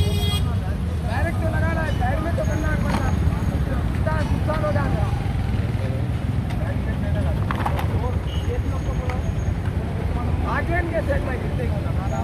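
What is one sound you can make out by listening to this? A man speaks firmly nearby, outdoors.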